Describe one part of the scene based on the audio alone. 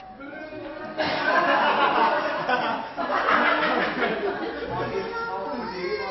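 A group of men and women chatter and laugh loudly.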